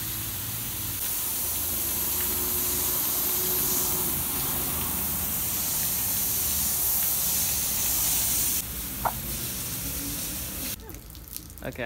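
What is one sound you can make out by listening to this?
A hose sprays water in a steady hiss.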